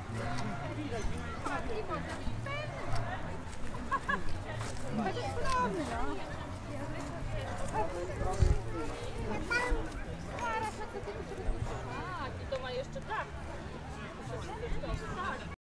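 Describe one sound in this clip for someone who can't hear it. A crowd of adults and children chatter outdoors.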